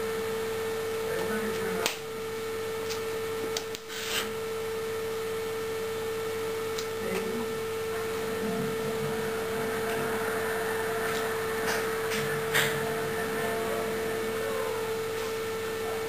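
A young man speaks softly and with feeling, close by.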